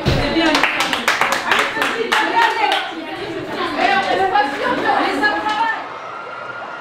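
Young women cheer and shout excitedly close by.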